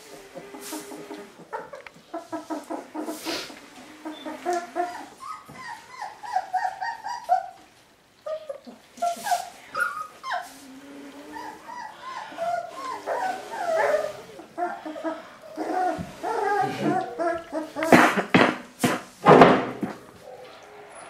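Puppies whine and squeak in high, wavering cries.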